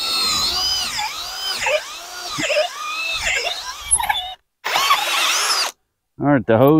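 A power drill whirs, changing pitch as it bores into wood.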